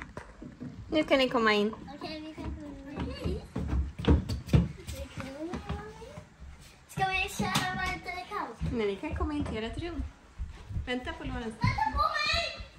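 A young child chatters and laughs excitedly close by.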